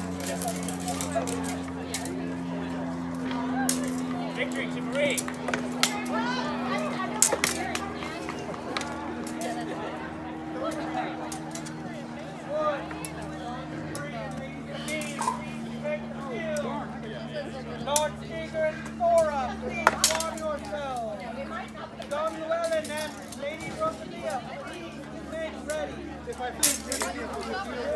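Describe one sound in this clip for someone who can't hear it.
Steel swords clash and clang sharply.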